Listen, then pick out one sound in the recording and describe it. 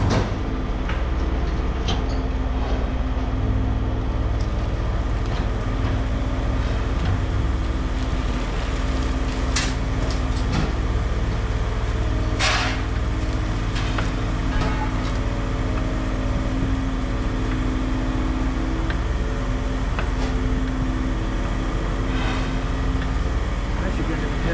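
A heavy machine's diesel engine rumbles steadily nearby.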